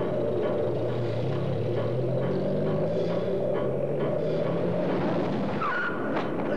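A small truck engine runs as the truck drives by.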